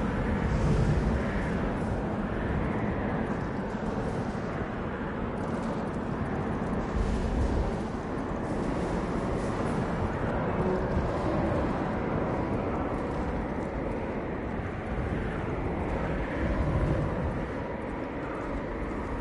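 Strong wind blows steadily through a snowstorm.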